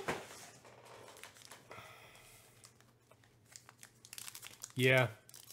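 Foil card packs rustle and crinkle as hands handle them.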